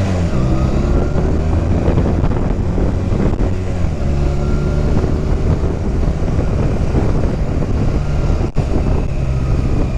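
A motorcycle engine rumbles steadily up close as it rides along.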